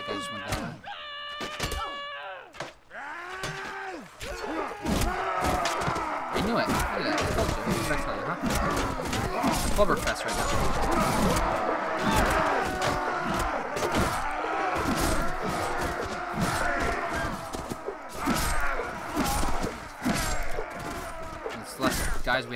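Swords and axes clash and clang in a busy melee.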